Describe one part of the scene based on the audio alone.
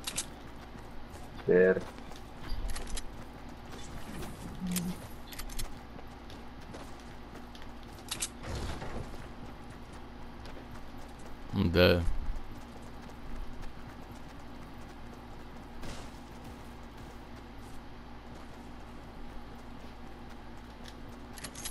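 Quick footsteps run over grass and pavement.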